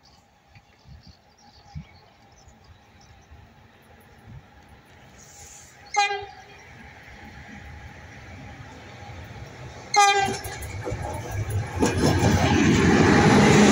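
A train rumbles closer along the tracks and roars past close by.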